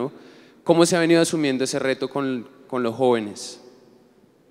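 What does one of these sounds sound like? A young man speaks into a microphone over a loudspeaker in a large room.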